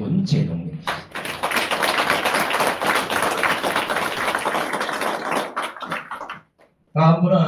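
A small group applauds.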